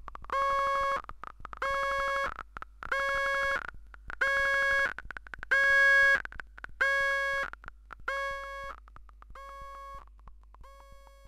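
A synthesizer plays a repeating buzzy electronic note in short pulses, growing quieter toward the end.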